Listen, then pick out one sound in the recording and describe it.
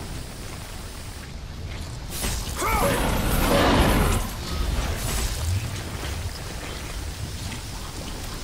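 A deep rumble rolls through a cavern.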